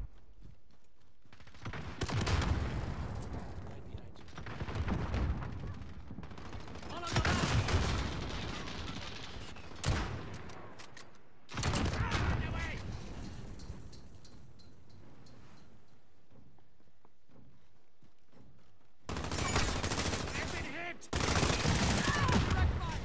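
A rifle fires sharp, loud shots.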